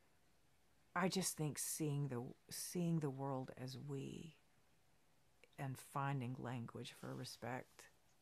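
A middle-aged woman speaks with animation, close to a microphone.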